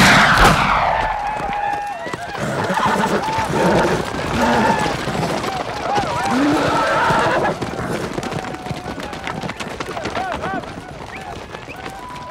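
Horses gallop across hard ground, hooves pounding.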